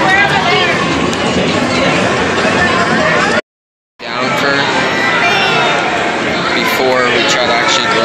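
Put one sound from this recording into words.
Arcade game machines play loud, busy electronic music and jingles.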